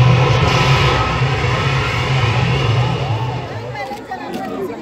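Loud music with a heavy beat plays through loudspeakers outdoors, then stops.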